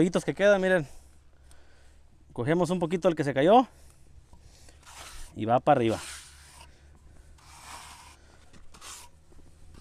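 A trowel scrapes against concrete.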